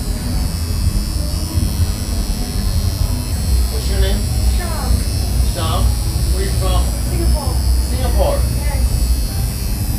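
A tattoo machine buzzes steadily.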